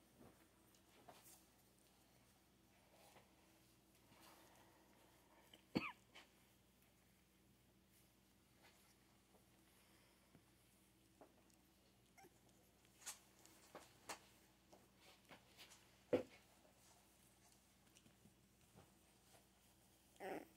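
Puppies shuffle and rustle on a soft blanket.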